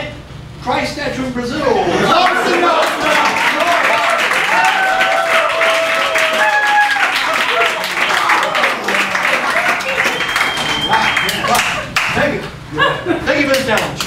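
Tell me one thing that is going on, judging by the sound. Several men sing and chant loudly together.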